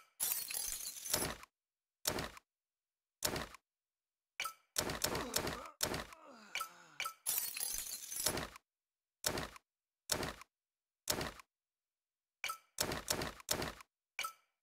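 Short game interface sounds click and rustle in quick bursts.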